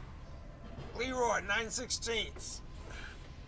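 A man speaks briefly from close by.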